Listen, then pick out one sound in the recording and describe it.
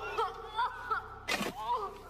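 A shovel scrapes into loose soil.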